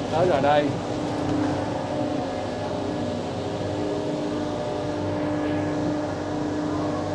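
A train's motor whines on a steady pitch.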